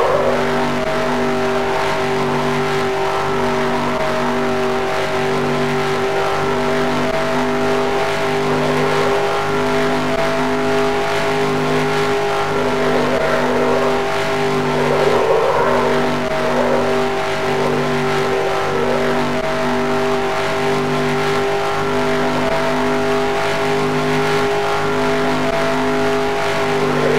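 A race car engine drones loudly at high speed.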